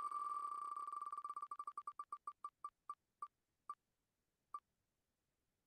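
Rapid ticking clicks slow down steadily and stop.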